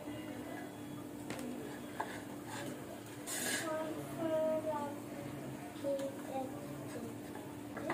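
A metal masher presses and scrapes on a plate.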